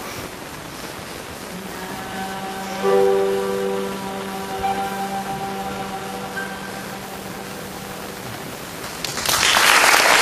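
A piano plays a slow melody.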